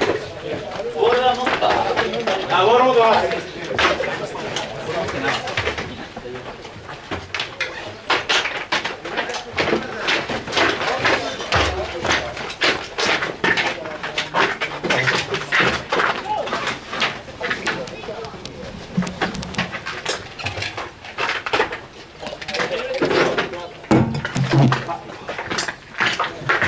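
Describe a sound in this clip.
Young men shout loudly across an open field.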